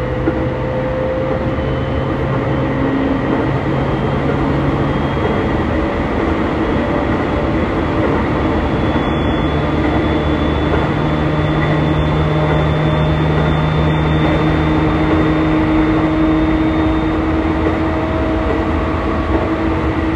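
A subway train rumbles and whines steadily as it runs along the track.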